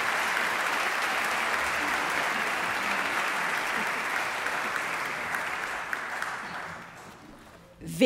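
An audience applauds in a large hall, then the clapping dies away.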